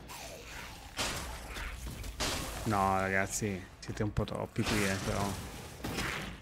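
A sword swings and strikes with heavy thuds.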